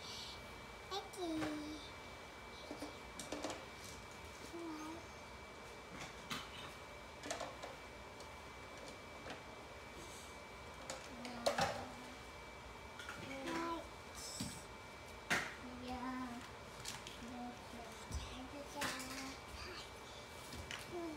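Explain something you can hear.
A small child babbles softly nearby.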